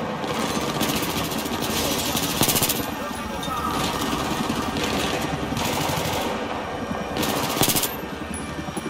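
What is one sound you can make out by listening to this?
Automatic gunfire rattles in short, loud bursts.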